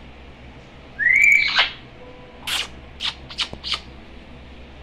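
A parrot whistles and squawks close by.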